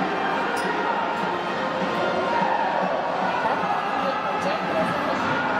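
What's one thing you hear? A large stadium crowd chants and sings loudly together.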